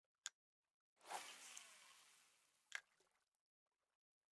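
A fishing rod swishes through the air as a line whizzes out in a cast.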